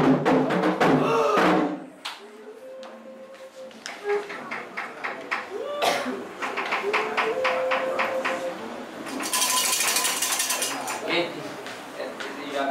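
Men and women sing together nearby.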